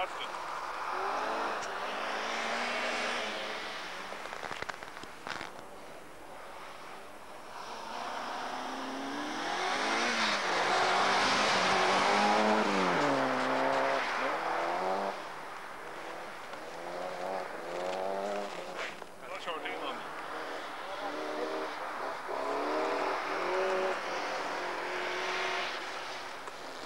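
A rally car engine revs hard, rising and falling in pitch as the car slides past.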